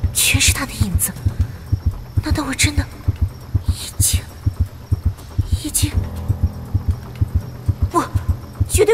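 A young woman speaks softly and haltingly, close by.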